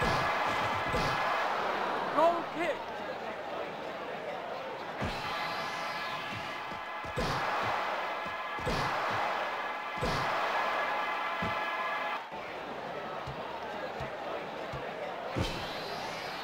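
A ball is kicked with short thuds.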